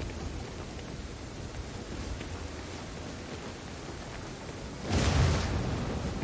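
Footsteps thud on stone steps.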